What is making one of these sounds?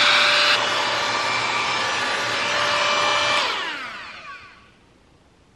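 A hair styling tool blows air with a loud, steady whir, then spins down and stops.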